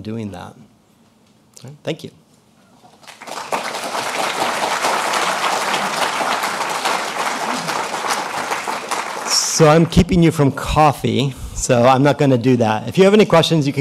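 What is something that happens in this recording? A man speaks calmly into a microphone, echoing in a large hall.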